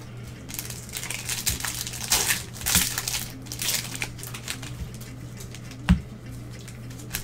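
Card packs rustle and crinkle close by.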